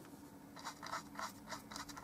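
A paintbrush scrapes softly across a canvas.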